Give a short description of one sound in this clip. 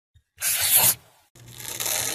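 A paper card slides onto a surface.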